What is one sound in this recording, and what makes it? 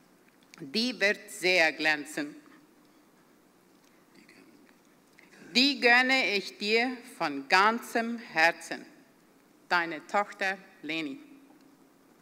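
A middle-aged woman reads out calmly through a microphone.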